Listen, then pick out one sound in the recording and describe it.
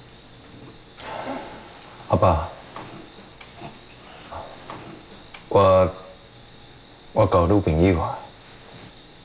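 A young man speaks quietly and hesitantly up close.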